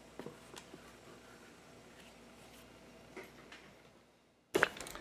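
Hands handle a stiff leather piece.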